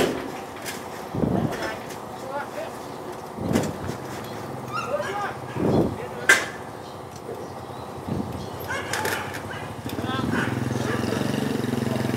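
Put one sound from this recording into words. A metal truck door swings and bangs against its frame.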